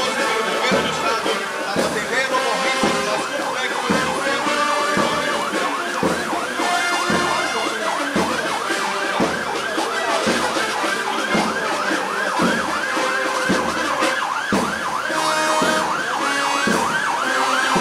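A marching band plays brassy music to a steady drumbeat outdoors.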